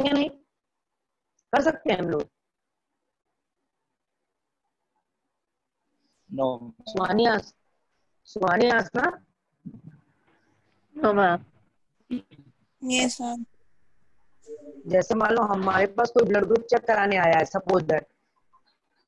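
A woman speaks calmly and explains, close to a microphone, with pauses.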